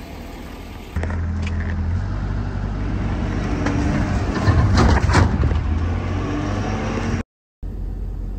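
A truck engine rumbles low and steady as the truck rolls slowly over rough ground.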